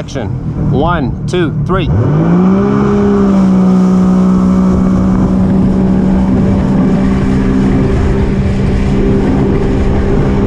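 A jet ski engine revs up and then drones steadily up close.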